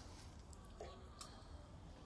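Milk squirts into a metal pail in short spurts.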